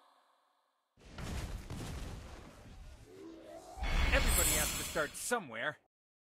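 Game sound effects rumble and whoosh.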